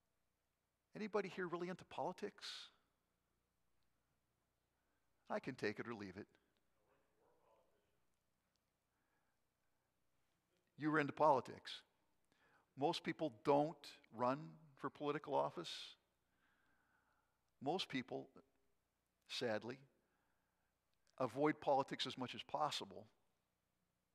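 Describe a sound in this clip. A man speaks calmly into a microphone, pausing often.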